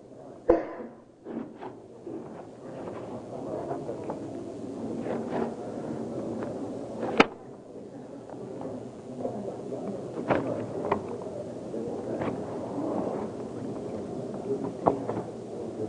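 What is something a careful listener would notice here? A man speaks calmly at a distance in an echoing hall.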